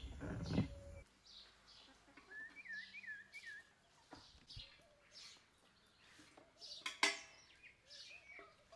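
Hens cluck softly outdoors.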